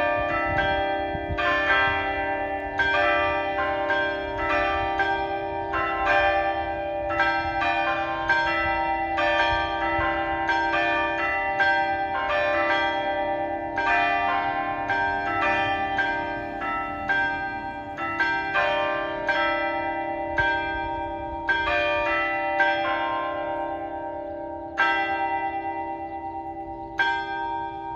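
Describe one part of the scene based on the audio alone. Church bells ring out repeatedly from a tower, each stroke ringing on.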